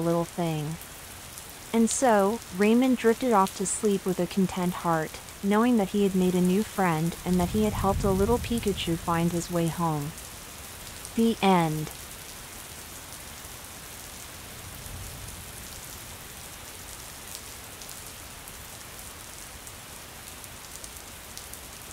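Heavy rain pours steadily onto a street.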